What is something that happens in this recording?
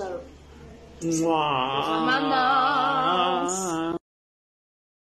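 A young woman sings loudly close by.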